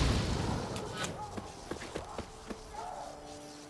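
Footsteps tread on grass.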